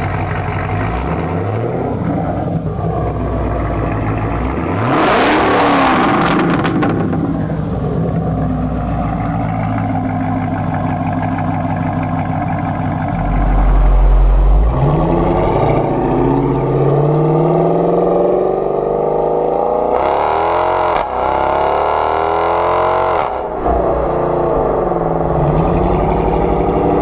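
A sports car engine revs hard and roars, then falls back.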